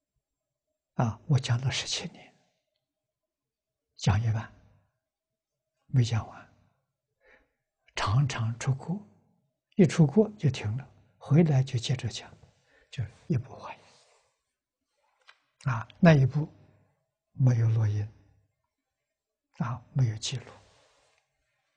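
An elderly man speaks calmly through a close microphone in short phrases with pauses.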